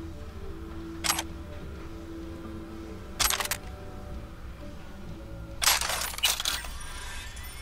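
Short sharp clicks sound as items are taken from a crate.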